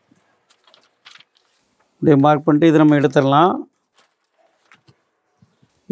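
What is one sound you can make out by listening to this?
A paper pattern rustles as it is lifted off the cloth.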